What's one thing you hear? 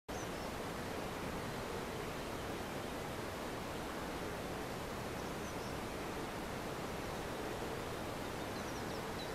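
Wind blows steadily across open water.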